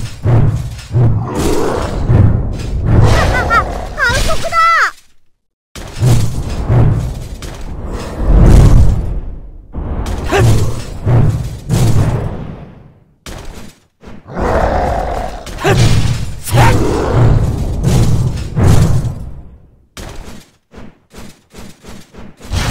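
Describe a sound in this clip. A large sword swings and slashes repeatedly.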